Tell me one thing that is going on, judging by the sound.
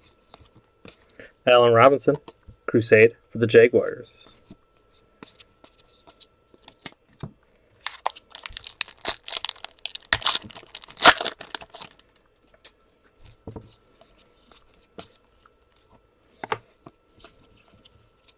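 Trading cards rustle and slide against each other as they are shuffled.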